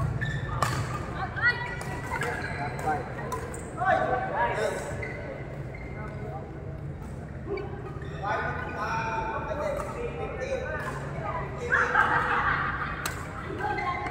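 Shoes squeak on the court floor.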